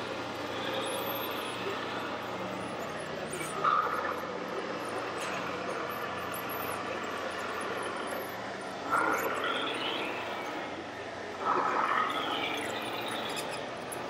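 A small electric motor whines as a model loader moves its arm.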